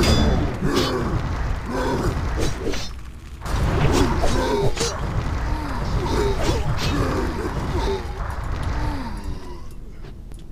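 Fire spells whoosh and roar in quick bursts.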